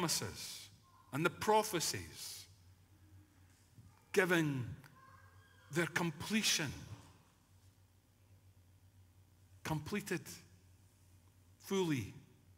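An elderly man speaks slowly and deliberately in an echoing hall, with pauses between phrases.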